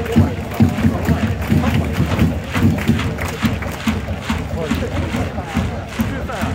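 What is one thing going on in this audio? A large crowd chants in rhythm in an open-air stadium.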